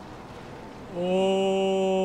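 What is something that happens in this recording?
A young man cries out in surprise close to a microphone.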